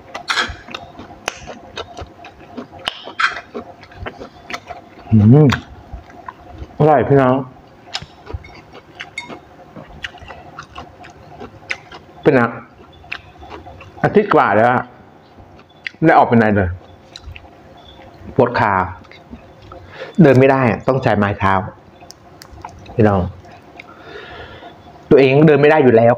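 A woman chews and smacks her lips while eating.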